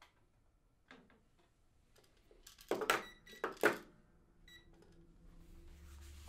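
Fingers tap and click on a small device.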